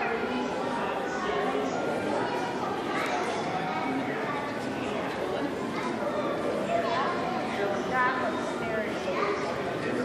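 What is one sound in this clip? A crowd of adults murmurs and chatters in an echoing hall.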